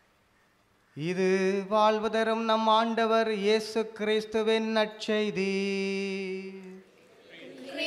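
A man chants in a sung voice through a microphone.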